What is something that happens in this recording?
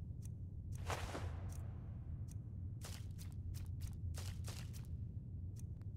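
Short soft clicks and swishes sound as menu items are picked.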